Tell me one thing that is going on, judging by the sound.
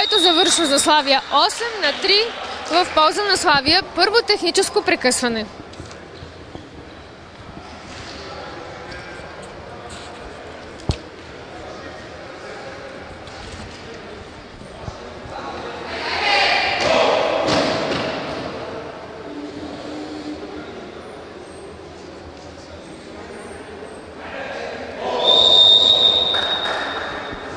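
A crowd cheers and chants loudly in an echoing hall.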